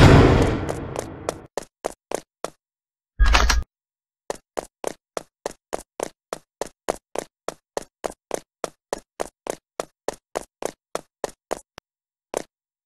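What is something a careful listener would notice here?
Quick, regular footsteps tap on a hard floor.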